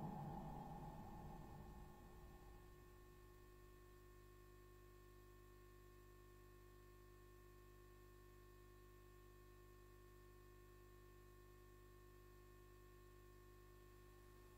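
A low electronic drone hums steadily.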